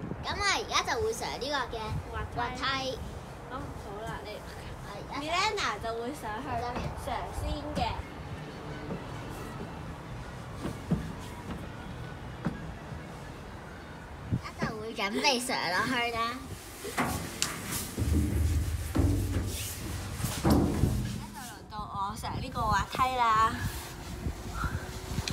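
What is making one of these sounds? A young girl talks and laughs close by.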